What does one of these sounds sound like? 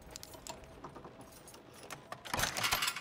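A lock is picked with small metallic clicks.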